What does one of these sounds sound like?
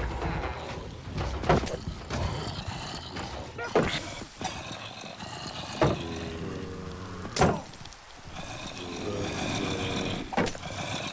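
Zombies groan in low, moaning voices.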